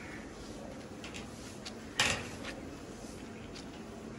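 A cloth wipes and rubs across a metal surface.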